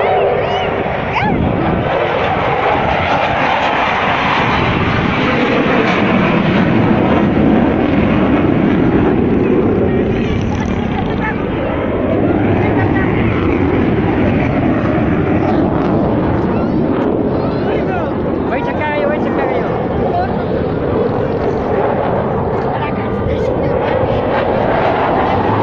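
A large outdoor crowd cheers and chatters loudly.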